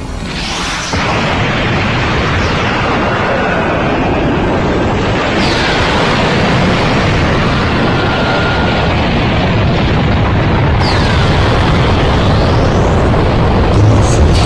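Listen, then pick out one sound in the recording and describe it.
A huge explosion roars and rumbles on.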